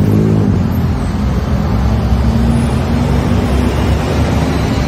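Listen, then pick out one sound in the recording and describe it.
A motorbike engine hums as it passes close by.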